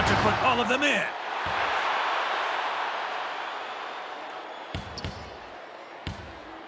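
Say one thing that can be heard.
A crowd cheers loudly after a slam dunk, then fades.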